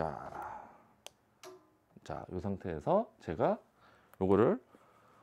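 A light stand clicks as it is adjusted.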